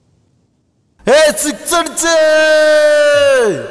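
A young man shouts loudly into a microphone over a loudspeaker.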